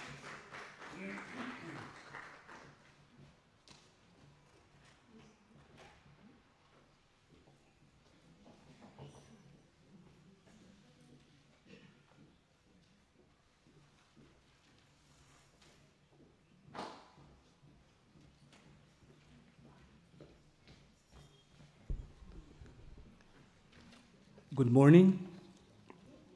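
A crowd of people chats and murmurs in a large echoing hall.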